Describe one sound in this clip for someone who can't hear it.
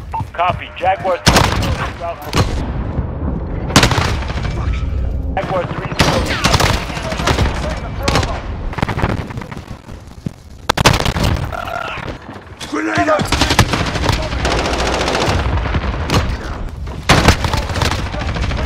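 Rapid gunfire bursts ring out.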